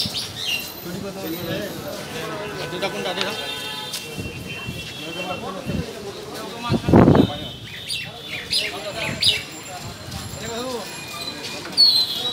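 Men talk and murmur nearby in a small crowd outdoors.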